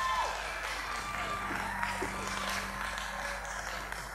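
A large choir sings together.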